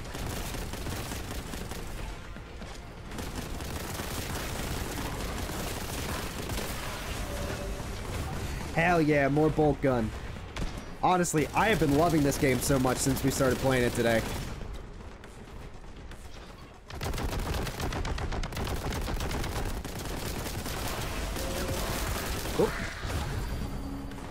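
Guns fire in rapid bursts with fiery blasts.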